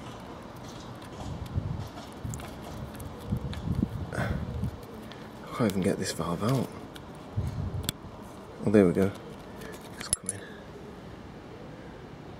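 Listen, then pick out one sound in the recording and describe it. Metal parts click and scrape against each other.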